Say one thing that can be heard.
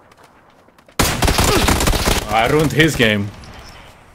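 Rapid gunshots crack loudly.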